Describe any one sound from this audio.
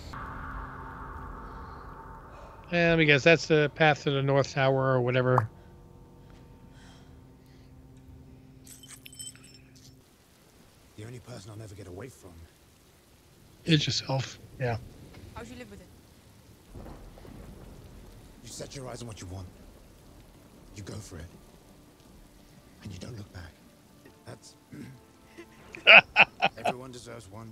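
A middle-aged man talks with animation into a microphone.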